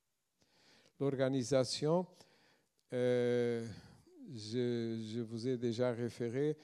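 A man speaks calmly into a microphone in a large hall.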